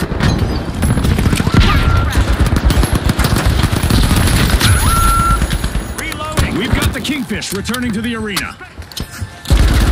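Explosions boom loudly and crackle.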